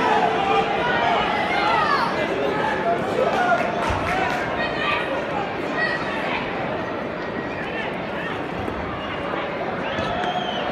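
Voices of a crowd murmur in a large open space.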